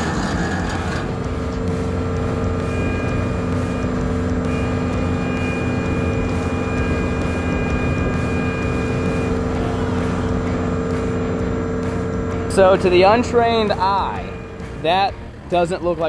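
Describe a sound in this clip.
A heavy diesel engine drones steadily close by.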